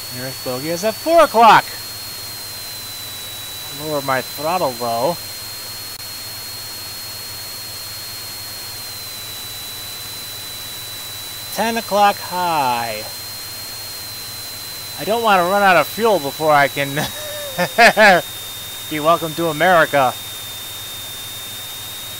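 A jet engine drones steadily.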